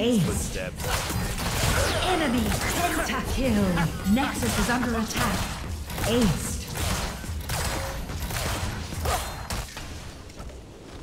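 Game spells crackle and blast in quick bursts.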